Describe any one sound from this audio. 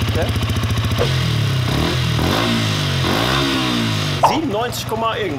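A motorcycle engine revs up and down loudly.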